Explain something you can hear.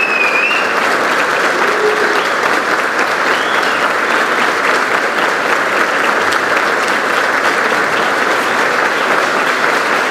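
A large crowd applauds steadily in a large echoing hall.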